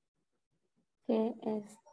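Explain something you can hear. A young woman speaks loudly over an online call.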